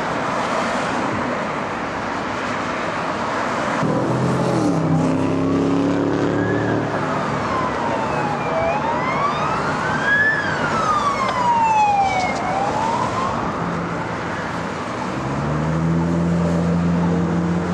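Traffic hums and rushes steadily nearby.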